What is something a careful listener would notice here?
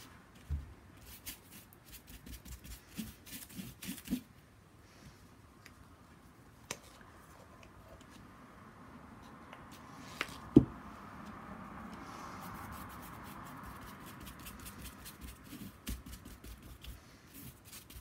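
A paintbrush scratches and dabs across paper.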